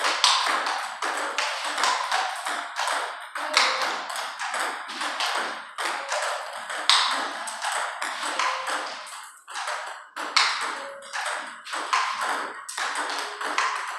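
Ping-pong balls click rapidly off paddles and a table in an echoing room.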